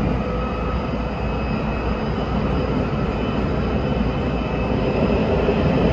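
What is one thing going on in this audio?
The train's roar grows hollow and echoing as it enters a tunnel.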